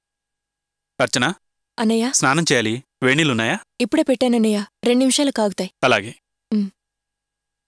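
A young woman speaks earnestly nearby.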